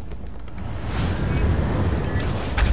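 A magic spell crackles and hums with a rushing burst.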